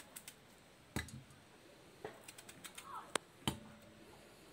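Pieces of vegetable drop into a metal pot with knocks.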